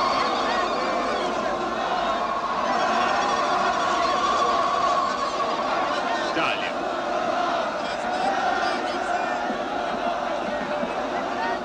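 A large crowd shouts and clamours loudly.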